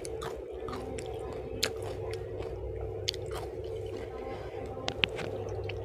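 Fingers squish and rustle through rice and sauce.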